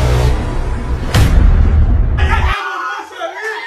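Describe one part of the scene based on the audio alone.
Loud music plays.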